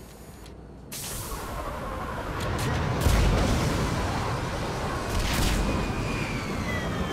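Debris rumbles and crashes loudly.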